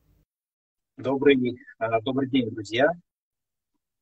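A man speaks briefly and close to a microphone.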